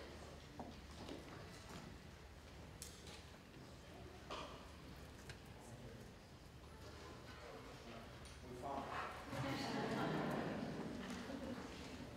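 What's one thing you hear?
An audience claps in a large, echoing hall.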